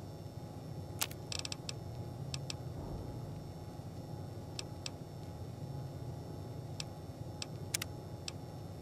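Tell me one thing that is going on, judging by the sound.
Short soft clicks tick now and then as menu items are selected.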